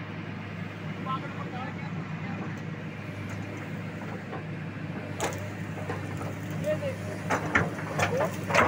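An excavator engine hums steadily.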